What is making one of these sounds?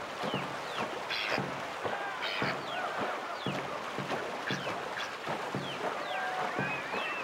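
A paddle splashes rhythmically through water.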